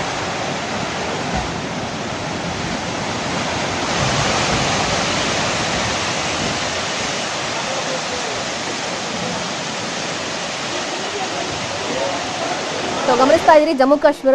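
Rocks and earth rumble and roar as a hillside collapses.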